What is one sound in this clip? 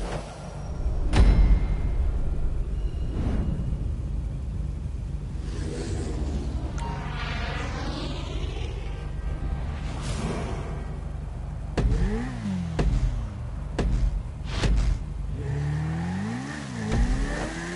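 A motorcycle engine idles and revs in short bursts.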